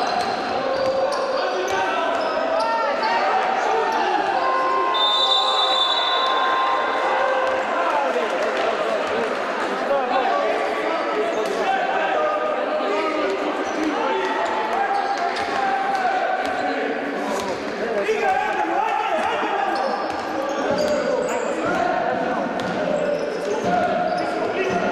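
A crowd murmurs and calls out in an echoing indoor hall.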